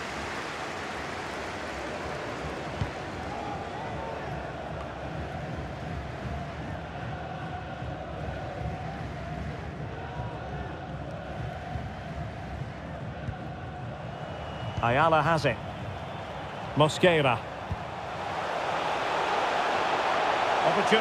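A large stadium crowd roars steadily and swells louder toward the end.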